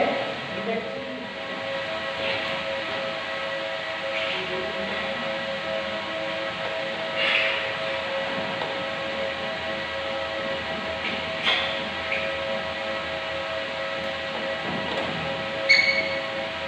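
Metal tools clink while men work on a machine.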